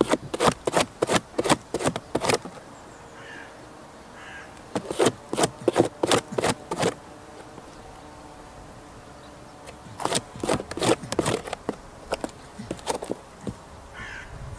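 A goat crunches and chews on food close by.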